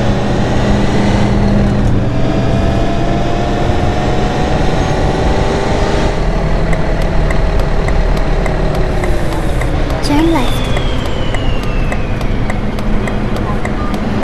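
A bus engine hums steadily as the bus drives.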